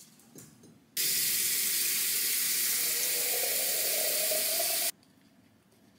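Water runs from a kitchen tap into a glass vase, rising in pitch as it fills.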